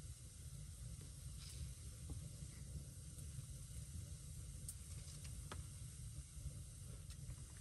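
Small plastic parts click as they are handled.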